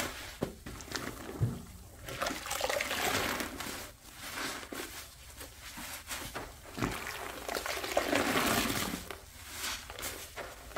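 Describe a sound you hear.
Gloved hands swish and slosh through soapy water.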